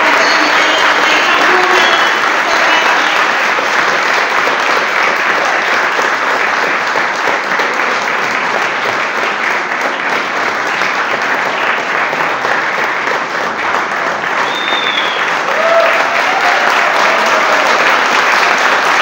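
A woman sings into a microphone over the band.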